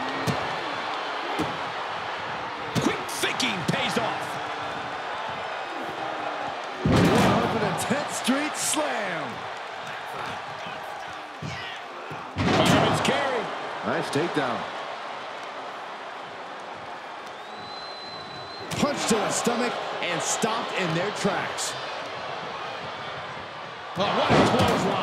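A crowd cheers and roars throughout a large arena.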